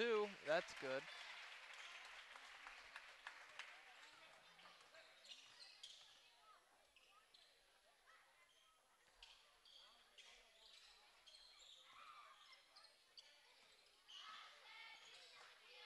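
A crowd cheers and chatters in a large echoing gym.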